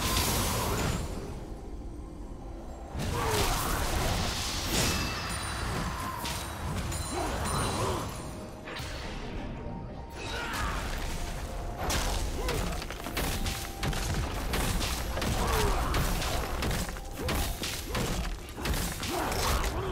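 Blows land in quick, sharp hits.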